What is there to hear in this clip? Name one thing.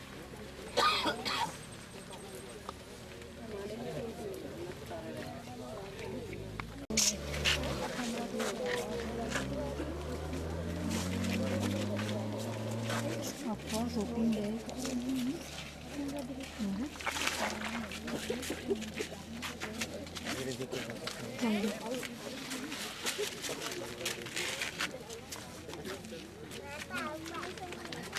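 A crowd of men and women talks and murmurs nearby.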